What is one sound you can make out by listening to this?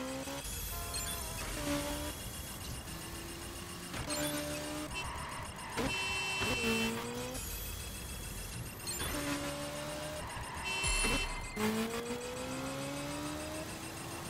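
A motorcycle engine revs up and down through the gears.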